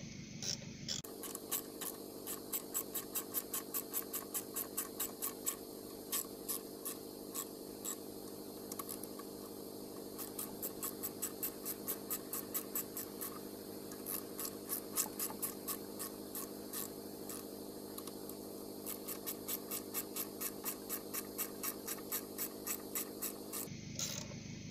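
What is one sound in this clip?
A small power tool buzzes steadily with a quick rhythmic rattle.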